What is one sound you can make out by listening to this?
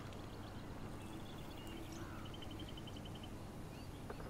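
Birds chirp outdoors.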